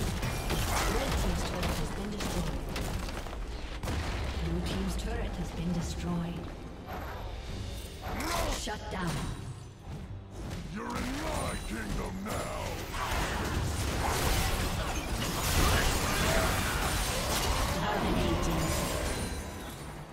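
Magic blasts crackle and boom during a fast fight.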